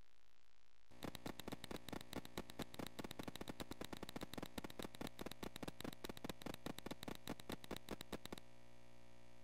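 A retro video game bleeps rapidly as a sprinter runs.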